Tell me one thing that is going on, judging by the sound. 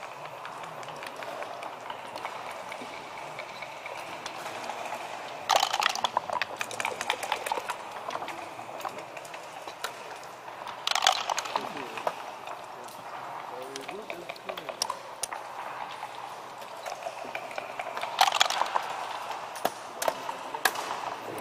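Backgammon checkers click and clack as they are moved across a board.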